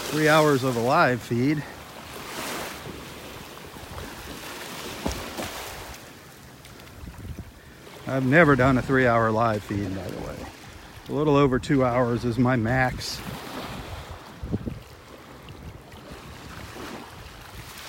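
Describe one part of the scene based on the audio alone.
Small waves lap gently at the shoreline.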